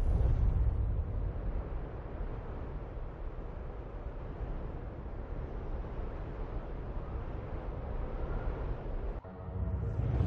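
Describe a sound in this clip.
A car engine rumbles low and steady as it drives along a road.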